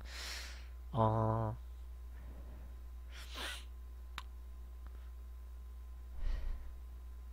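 A young man makes short murmurs and sighs close to a microphone.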